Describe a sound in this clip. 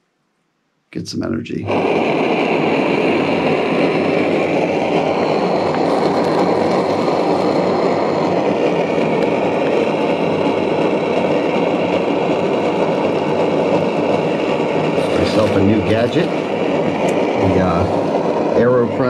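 A camping stove roars steadily.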